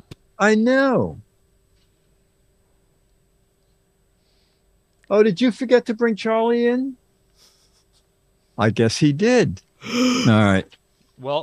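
An elderly man speaks expressively into a close microphone, in short bursts with pauses.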